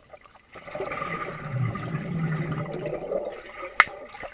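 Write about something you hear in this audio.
Air bubbles rush and gurgle around a swimmer, heard underwater.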